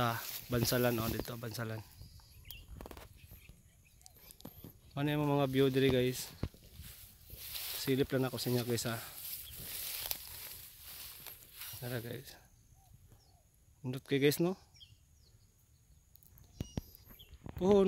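Wind rustles through tall grass outdoors.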